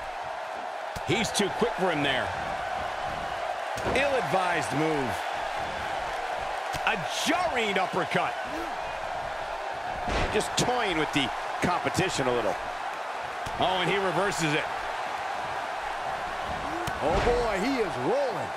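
Blows land with sharp thuds during a wrestling match.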